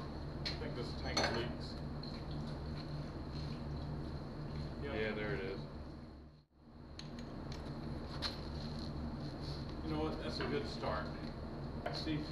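Men talk nearby in a calm, casual way.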